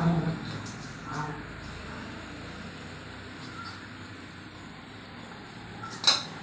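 A cat gnaws and chews on a plastic strap nearby.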